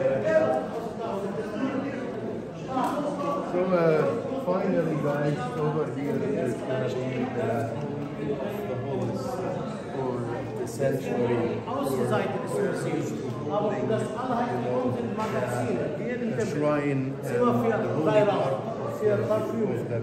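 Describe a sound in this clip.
A crowd of people murmurs and chatters in the background.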